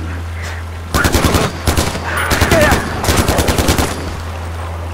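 An automatic rifle fires rapid bursts close by.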